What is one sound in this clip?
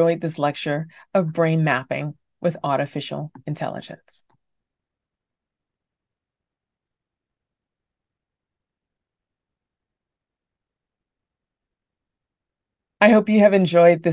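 A woman speaks warmly and clearly through an online call.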